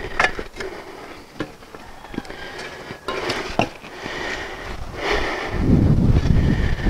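A shovel scrapes and thuds into dry soil.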